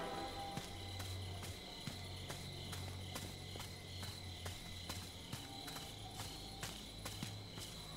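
Footsteps crunch quickly on dry leaves.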